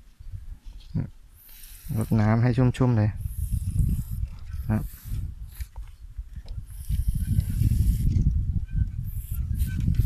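Leaves rustle softly as hands brush through small plants.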